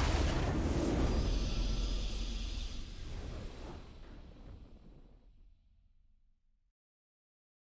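A triumphant game fanfare plays loudly and slowly fades away.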